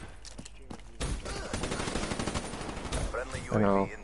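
Automatic gunfire rattles rapidly and loudly.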